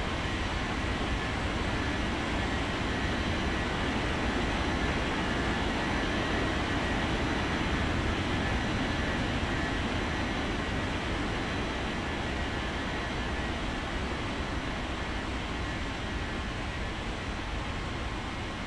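A jet airliner roars as it takes off and climbs away.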